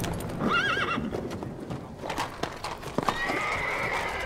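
A horse's hooves clop on cobblestones.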